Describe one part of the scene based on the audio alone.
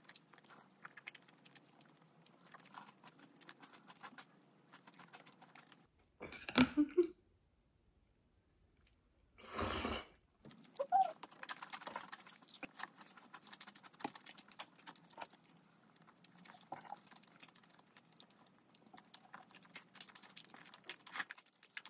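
A young woman chews food with wet, smacking sounds close to the microphone.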